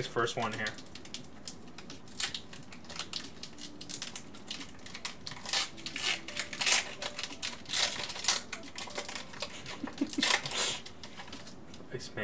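A foil wrapper crinkles and rustles in hands.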